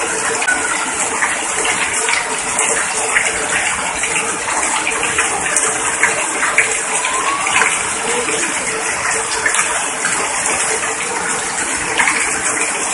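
Rain drums on an umbrella overhead.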